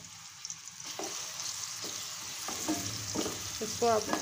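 A wooden spoon scrapes and stirs in a metal pan.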